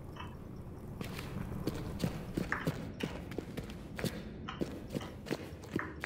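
Footsteps thud quickly on a stone floor.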